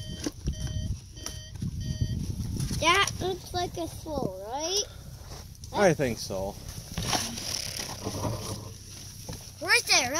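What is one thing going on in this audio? Plastic toy wheels roll and crunch over snow.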